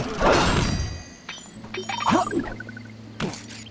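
Coins jingle with bright chimes.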